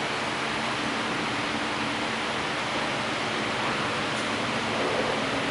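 A man speaks steadily through a loudspeaker in a large echoing hall.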